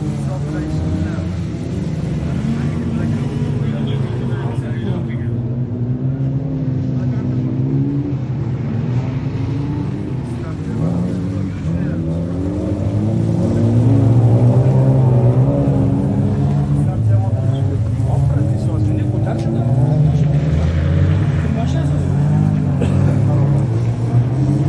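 Rally car engines roar and rev as the cars race over dirt.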